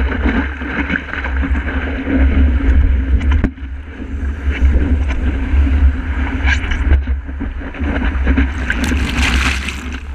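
A breaking wave roars and churns close by.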